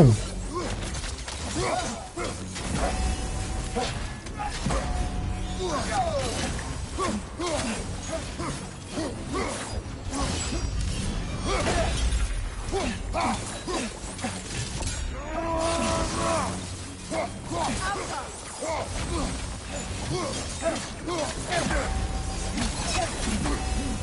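Blades clash and slash in a fight, with sharp metallic strikes.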